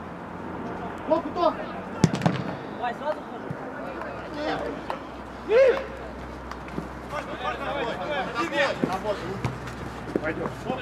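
Men shout to each other across an outdoor playing field.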